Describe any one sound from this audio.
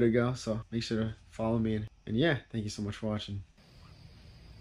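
A young man speaks with animation, close to the microphone.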